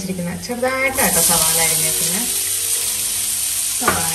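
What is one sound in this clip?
Chopped onions tumble into hot oil and sizzle loudly.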